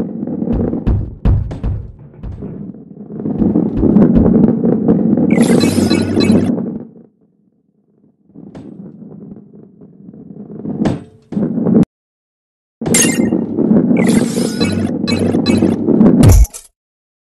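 A heavy ball rolls along a wooden track with a low, rumbling roar.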